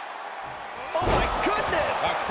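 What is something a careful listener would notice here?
A body slams hard onto a ring mat with a loud thud.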